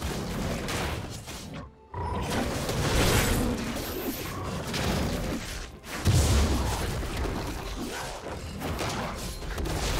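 Magic spells crackle and burst during a fight.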